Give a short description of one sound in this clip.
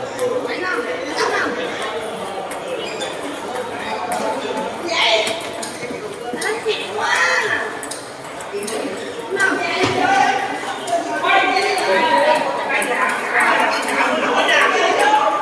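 Table tennis balls click rapidly on paddles and tables.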